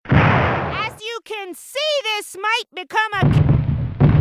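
A woman shouts in a high, rising and falling voice.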